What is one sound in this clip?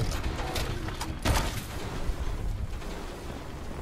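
A swung weapon lands a heavy, sharp thud.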